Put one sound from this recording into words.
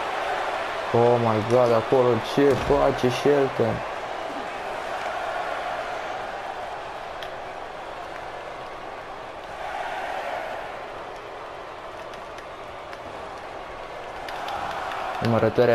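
A crowd chants loudly in unison.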